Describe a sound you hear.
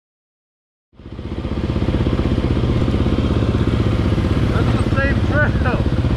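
A dirt bike engine idles loudly close by.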